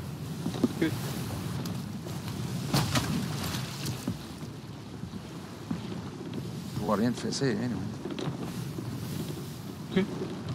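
Waves wash steadily against a wooden ship.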